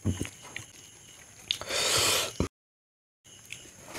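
Fingers squish and mix rice wetly.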